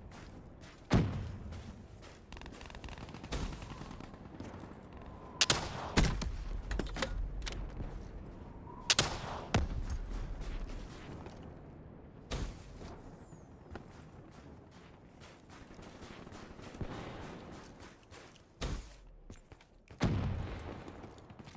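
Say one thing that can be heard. Loud gunshots and explosions boom now and then.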